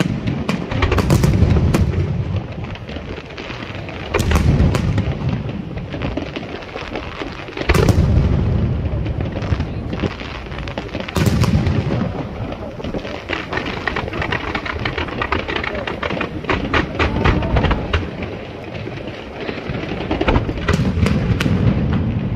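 Fireworks crackle and pop in rapid bursts.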